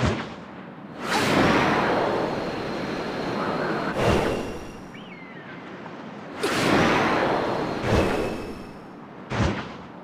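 Jet wings roar in loud swooshing bursts.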